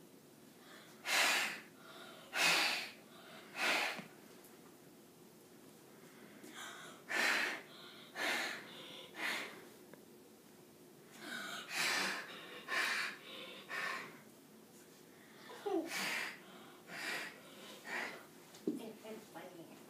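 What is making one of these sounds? A young girl beatboxes in sharp bursts of breathy, percussive sounds.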